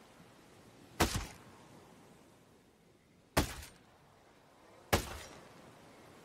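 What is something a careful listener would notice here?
A rifle fires loud, sharp shots with a short echo.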